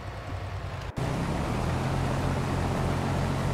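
A combine harvester engine roars steadily.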